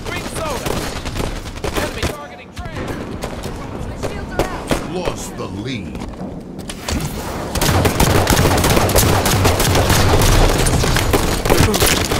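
Rapid gunfire and energy blasts ring out in bursts.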